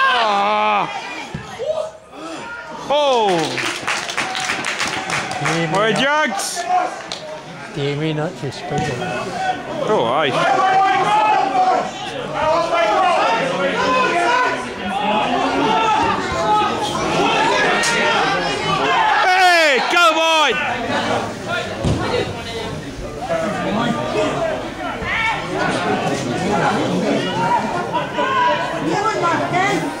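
Men shout to each other across an open pitch outdoors.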